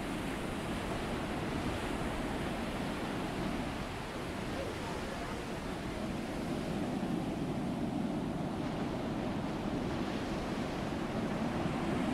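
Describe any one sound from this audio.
Waves wash steadily against a moving ship's hull.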